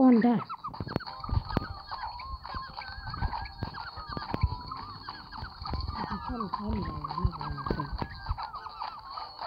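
Bouncy game sound effects chirp and pop throughout.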